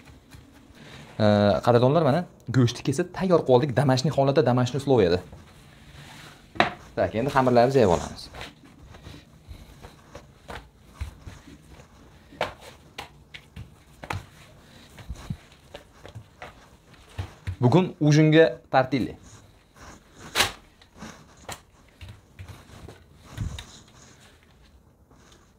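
Soft taps and rustles come from hands handling food on a counter.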